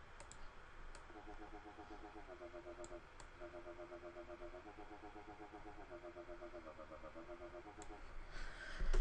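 A synthesizer plays a soft, quick repeating pattern of notes.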